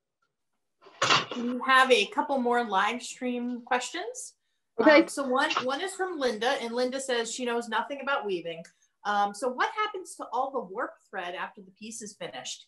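A woman talks with animation over an online call.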